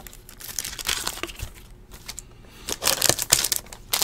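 Plastic wrap crinkles as it is torn off.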